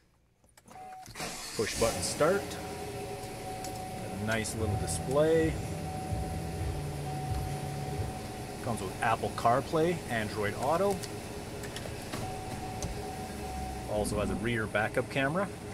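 A car engine starts and idles with a steady low hum.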